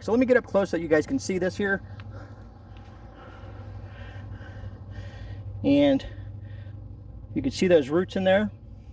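A middle-aged man talks calmly close to a microphone, outdoors.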